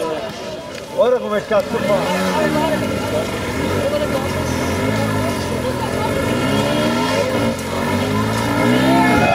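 A dirt bike engine revs hard up a slope.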